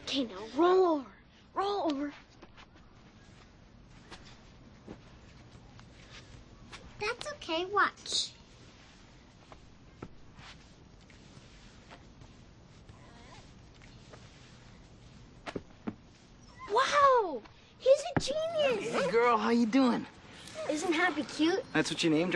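A young child speaks excitedly up close.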